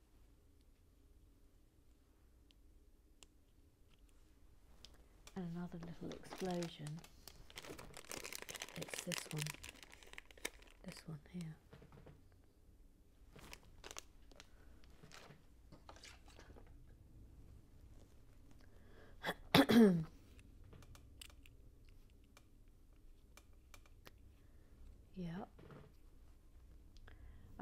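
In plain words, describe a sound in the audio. Small plastic pieces click together.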